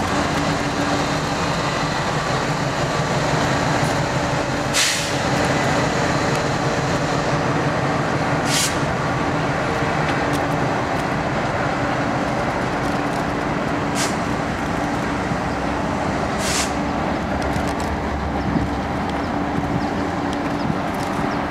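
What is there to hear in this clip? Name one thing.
A diesel-electric locomotive rumbles past at low speed, pulling a freight train.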